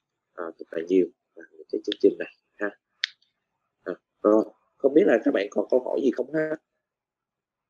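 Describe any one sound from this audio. A man speaks with animation over an online call, close to the microphone.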